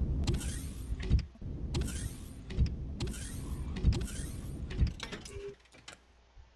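Heavy footsteps thud on a metal floor.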